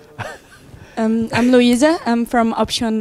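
A young woman speaks into a microphone, clearly and close up.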